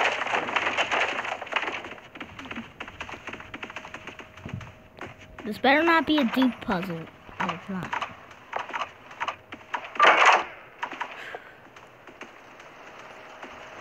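Quick footsteps patter across a wooden floor.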